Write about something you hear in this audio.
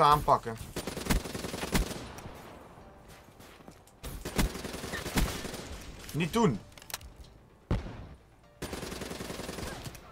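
Gunfire from a game rattles in quick bursts.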